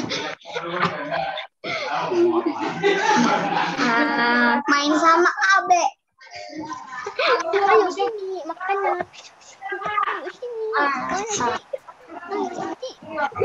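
A young boy talks over an online call.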